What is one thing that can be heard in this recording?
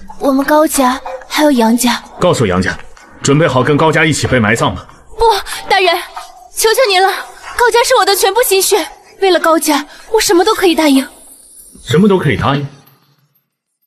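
A young woman speaks coldly and firmly, close by.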